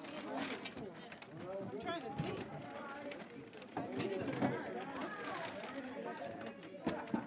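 Paper bags rustle and crinkle close by.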